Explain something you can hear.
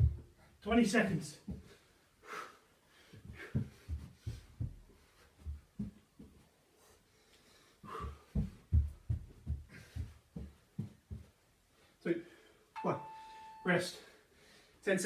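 Feet thump and patter on a carpeted floor during a workout.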